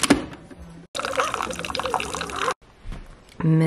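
Coffee streams from a machine and splashes into a mug.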